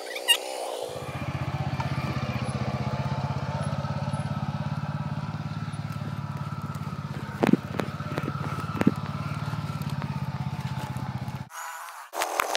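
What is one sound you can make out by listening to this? A quad bike engine idles with a low rumble close by.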